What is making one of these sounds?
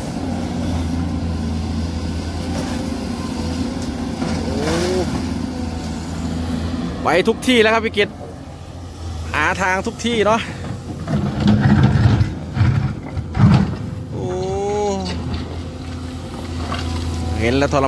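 An excavator engine rumbles steadily close by.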